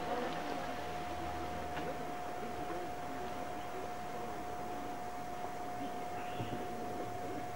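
Leaves rustle softly in the wind.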